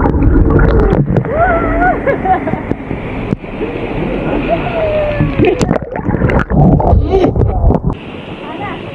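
Water splashes loudly as people move through it.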